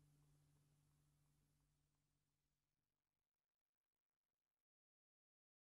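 An acoustic guitar chord rings out and slowly fades away.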